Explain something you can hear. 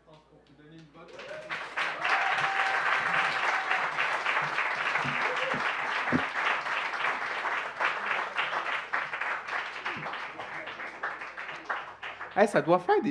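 An audience applauds and cheers in a hall.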